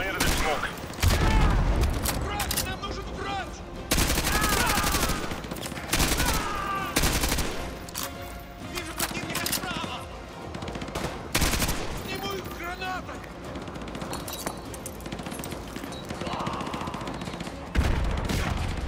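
Heavy rifle shots boom loudly, one at a time, with a rolling echo.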